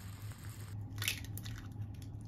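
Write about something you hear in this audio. An egg cracks against a pot's rim.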